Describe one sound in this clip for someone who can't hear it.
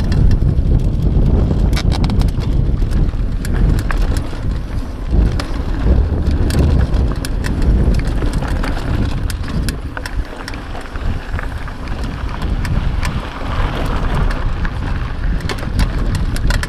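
Bicycle tyres crunch over a dirt trail.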